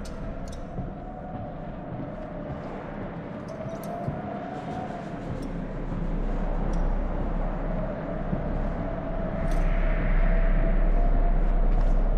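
Footsteps walk slowly across a hard floor in a large echoing room.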